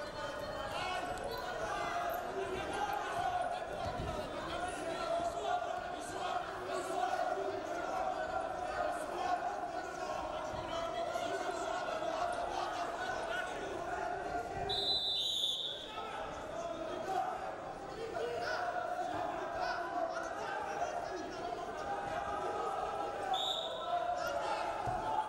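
A large crowd cheers and shouts steadily in a big echoing hall.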